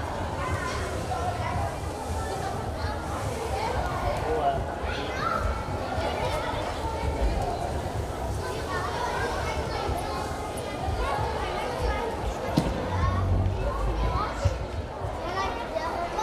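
Feet thud on soft gym mats.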